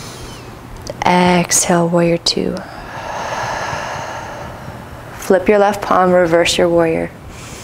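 A woman gives calm instructions close to a microphone.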